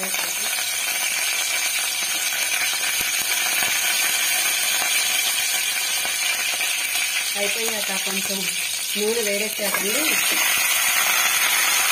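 Hot oil sizzles and crackles steadily in a metal pot.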